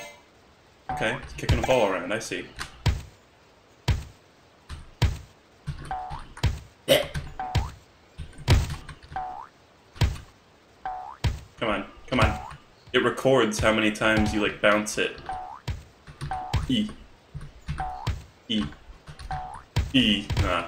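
Short game sound effects blip and thud as a cartoon figure jumps and bounces a shell.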